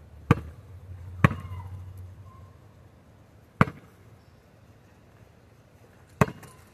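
A basketball bounces with sharp thuds on hard ground.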